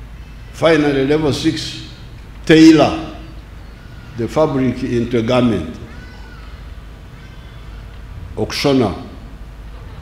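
An elderly man speaks slowly and firmly through a microphone and loudspeakers outdoors, with pauses between phrases.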